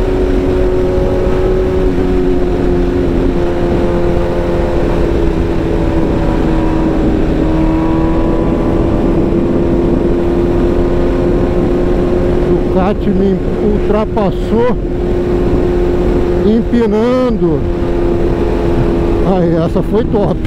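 Wind rushes loudly past a rider.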